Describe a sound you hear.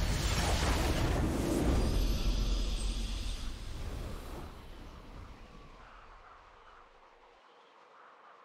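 A triumphant game fanfare booms and slowly fades away.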